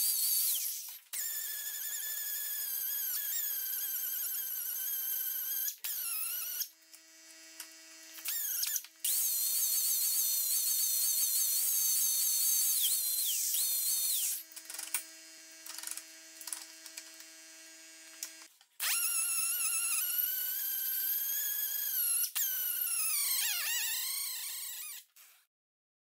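A power grinder whines at high speed and grinds against metal, rising and falling in pitch.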